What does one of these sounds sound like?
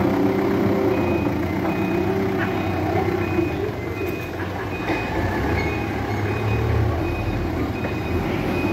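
A forklift beeps in a steady repeating pattern.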